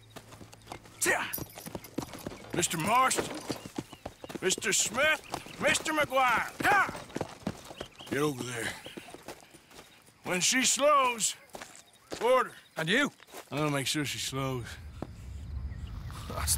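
A man speaks in a low, gruff voice nearby.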